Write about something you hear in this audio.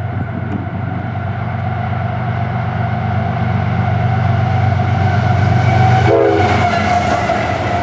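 A diesel locomotive engine rumbles loudly as it approaches and passes close by.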